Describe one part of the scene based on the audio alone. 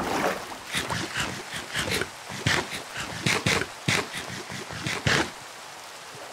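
A fish flops and splashes in water.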